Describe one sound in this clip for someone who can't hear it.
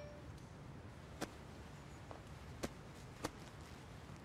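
A woman shifts and rustles on a leather couch.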